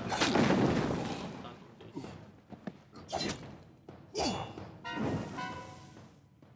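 Weapon blows strike with sharp impacts.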